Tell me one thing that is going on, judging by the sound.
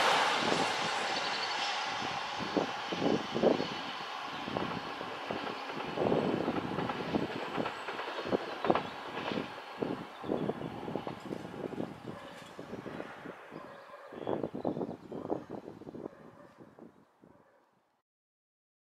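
A train rumbles past in the distance, fading away.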